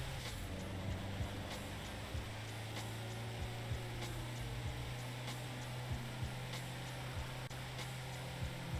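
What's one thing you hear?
A van engine hums steadily as it drives along.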